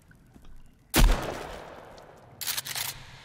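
A gun fires once with a loud bang that echoes.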